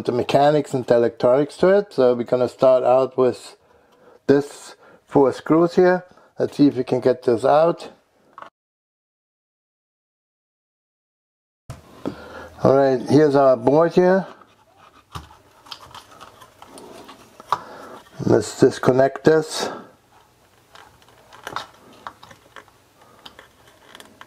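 Small plastic and metal parts click and rattle as they are handled.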